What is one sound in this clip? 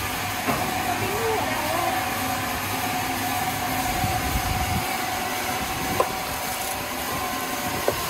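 A crane motor whines steadily.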